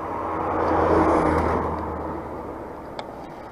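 A small van drives past close by, its engine humming loudly and then fading away.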